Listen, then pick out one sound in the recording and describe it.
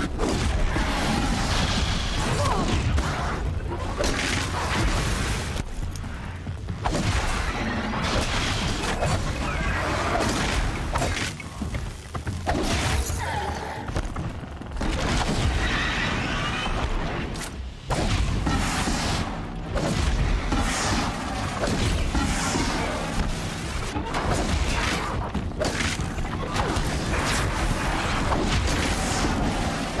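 Electric zaps crackle and spark.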